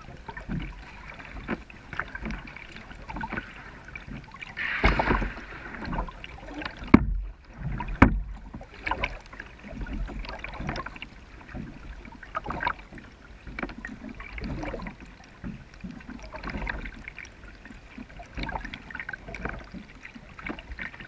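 A kayak paddle dips and splashes in calm water.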